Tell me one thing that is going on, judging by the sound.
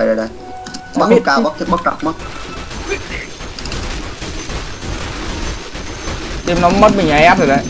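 Game weapons clash and spells burst during a fight.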